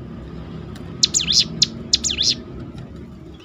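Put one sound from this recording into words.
A small bird sings loud, sharp, sweeping whistled notes close by.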